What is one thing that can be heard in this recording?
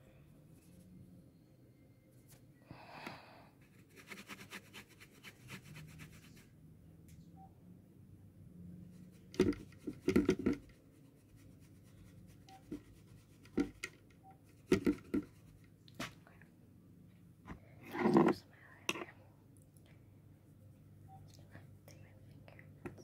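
Hands knock and rustle against a microphone.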